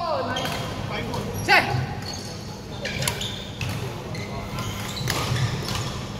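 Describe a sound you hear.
Shuttlecocks pop off badminton rackets in a large echoing hall.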